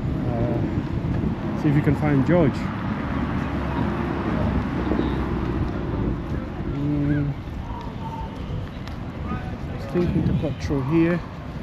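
Men and women chat nearby as they walk past.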